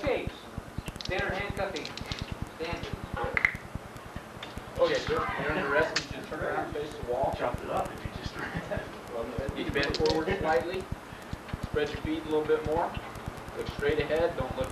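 A man speaks calmly, explaining, in a room with some echo.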